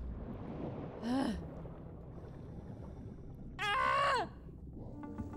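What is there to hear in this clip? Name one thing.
A young woman exclaims briefly into a microphone.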